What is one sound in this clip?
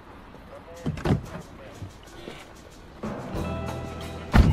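A car door opens with a thud.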